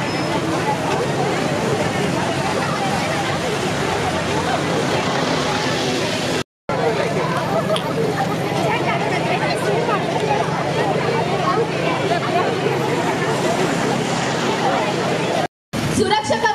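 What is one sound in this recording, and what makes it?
A large crowd of young people chatters and cheers outdoors.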